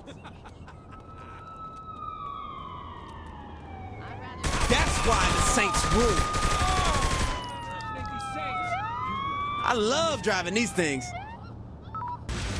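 A police siren wails and rises and falls in pitch.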